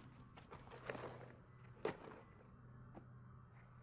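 An object is lifted off a shelf with a thump.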